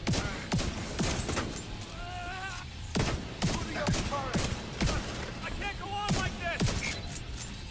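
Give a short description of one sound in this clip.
Gunshots fire in sharp, repeated bursts.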